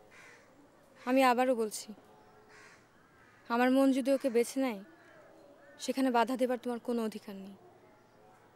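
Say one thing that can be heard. A woman speaks in short, troubled phrases close by.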